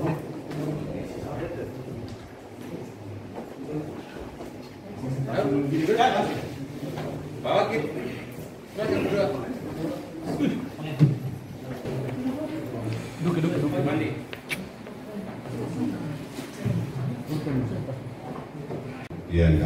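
Several men talk and murmur nearby.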